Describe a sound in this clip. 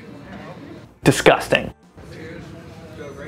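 Young men call out a toast together.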